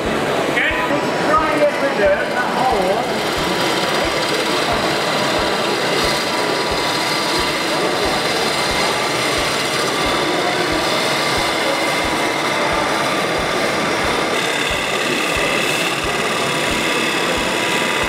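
A chisel scrapes against spinning wood.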